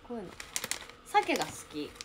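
A plastic packet crinkles.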